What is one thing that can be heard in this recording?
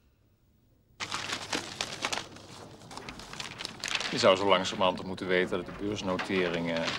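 A newspaper rustles as its pages are turned.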